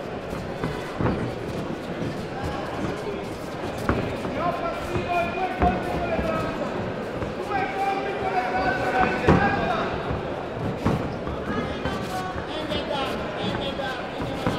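Padded blows thud as two fighters spar.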